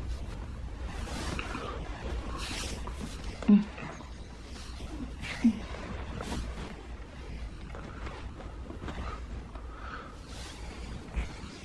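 A man breathes heavily close by.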